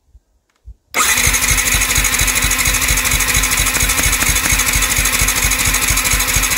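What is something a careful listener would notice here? A motorcycle engine cranks over with a fast, steady, rhythmic churning.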